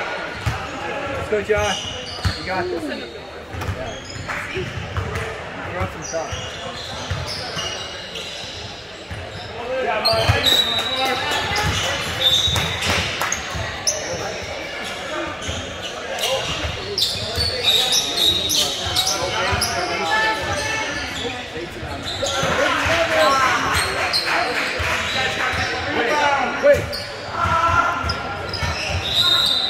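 Young men call out and shout to each other in a large echoing hall.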